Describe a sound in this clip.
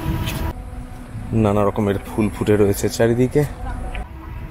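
An elderly man talks calmly into a microphone close by.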